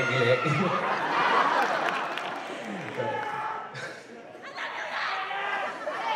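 A choir of young voices sings together in a large echoing hall.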